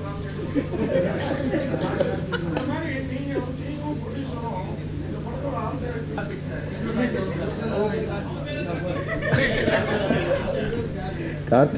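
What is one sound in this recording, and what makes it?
A young man laughs through a microphone.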